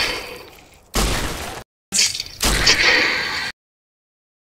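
A gun fires loud shots that ring out and fade.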